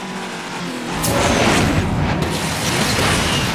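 A car lands hard with a rushing whoosh.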